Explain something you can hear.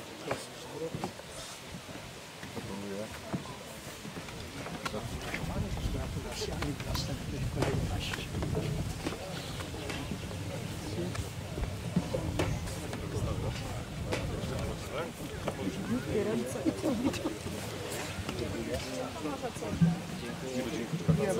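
Men talk and laugh nearby outdoors.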